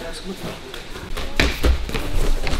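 Boxing gloves thud against punch mitts.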